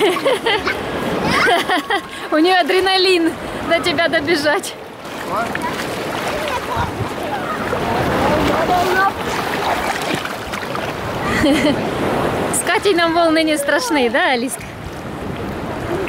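Water splashes and sloshes around people wading.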